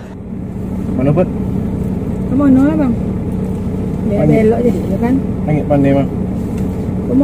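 A young man sings loudly close by.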